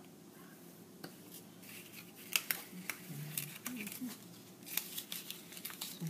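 Paper rustles and crinkles between fingers.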